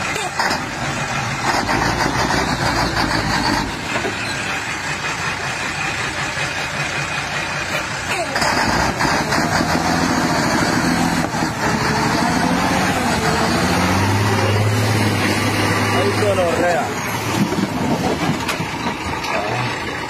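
A truck engine rumbles and strains.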